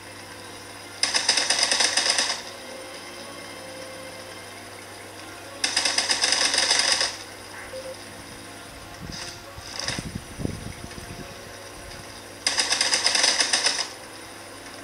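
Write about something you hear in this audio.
Bursts of rapid game gunfire play from a tablet speaker.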